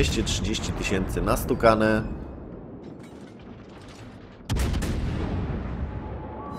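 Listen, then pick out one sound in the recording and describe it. Heavy naval guns fire with deep, rumbling booms.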